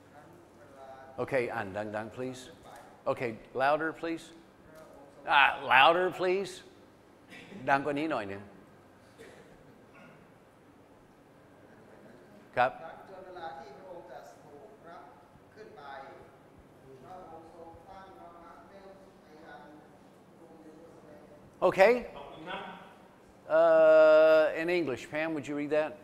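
A man speaks with animation through a microphone and loudspeakers in an echoing hall.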